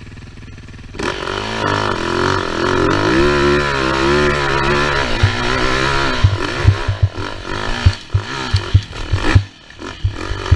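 A dirt bike engine roars up close, revving up and down.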